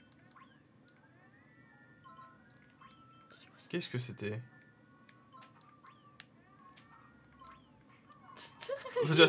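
Bright game chimes ring out over and over.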